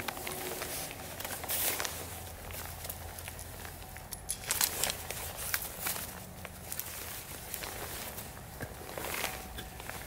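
Dry leaves rustle as a man shifts on the ground.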